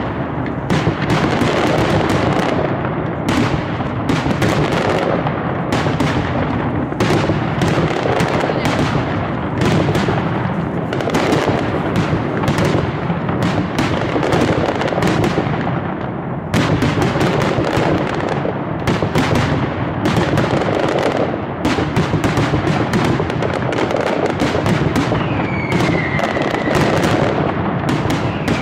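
Exploding fireworks rumble and boom deeply.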